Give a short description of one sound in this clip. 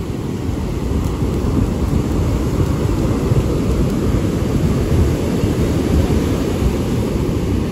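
Waves crash and wash onto the shore.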